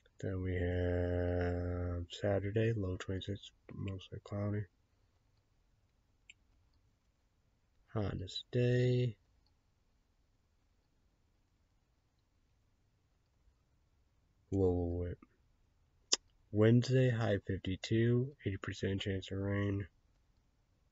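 A young man talks calmly and close by, with pauses.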